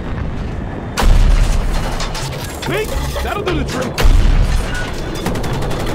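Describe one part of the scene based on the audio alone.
A tank cannon fires with heavy booms.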